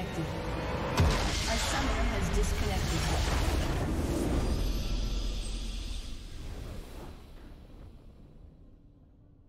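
A triumphant game fanfare swells up and slowly fades away.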